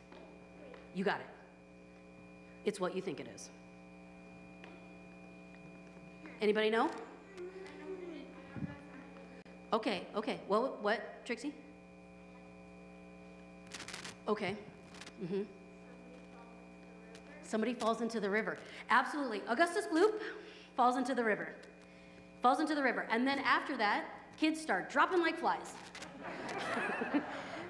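A woman speaks with animation through a microphone in an echoing hall, pausing between phrases.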